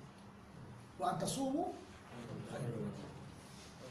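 A middle-aged man reads aloud slowly into a microphone.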